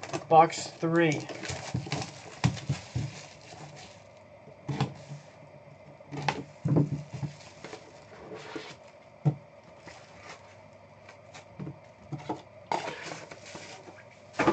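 Plastic wrapping crinkles and rustles as a pack is torn open.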